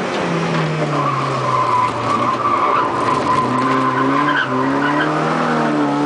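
A car engine roars and revs inside the cabin.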